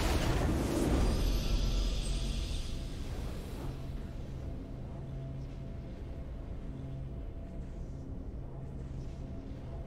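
A triumphant fanfare plays softly.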